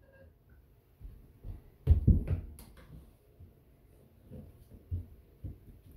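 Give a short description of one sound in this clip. Small footsteps and light thumps sound on a wooden floor.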